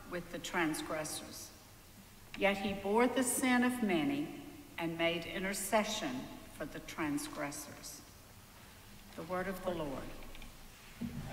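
A woman reads aloud calmly through a microphone in a large echoing hall.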